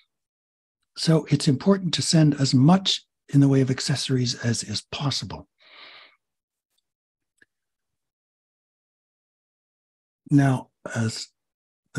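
A man speaks calmly over an online call, in short phrases.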